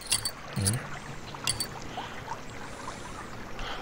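A short game chime sounds as a puzzle piece snaps into place.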